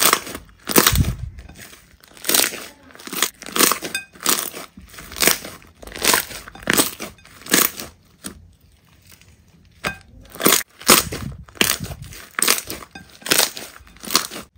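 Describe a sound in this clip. Thick slime squishes and squelches with wet pops as hands knead it.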